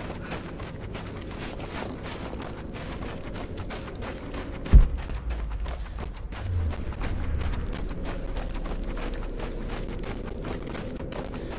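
Footsteps crunch steadily on snow and gravel.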